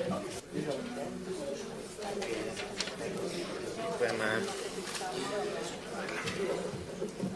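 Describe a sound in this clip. Several men talk and murmur at once in a large room.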